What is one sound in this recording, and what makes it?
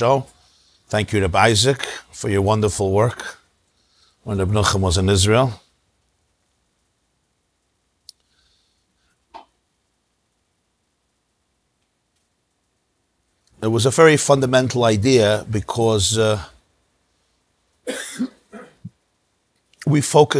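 A middle-aged man speaks calmly and with emphasis into a close microphone, pausing often.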